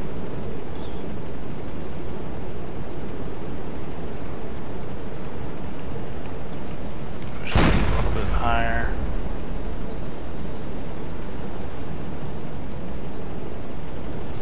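Sea waves wash and roll steadily.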